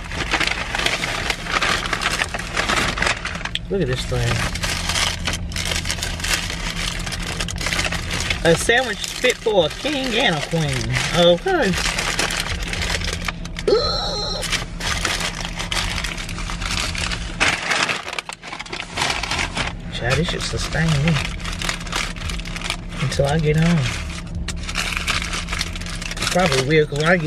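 A paper bag rustles and crinkles close by.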